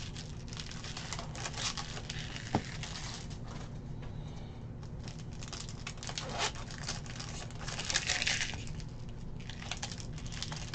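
Plastic wrapping crinkles as a card pack is torn open.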